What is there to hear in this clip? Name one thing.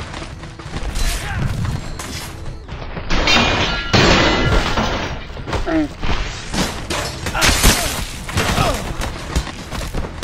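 A heavy blade slashes and strikes bodies with wet thuds.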